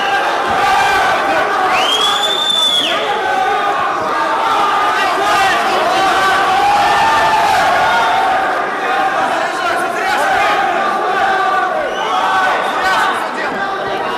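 A crowd murmurs and chatters throughout an echoing hall.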